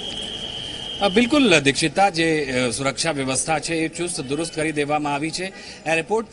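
A man speaks steadily into a microphone, reporting.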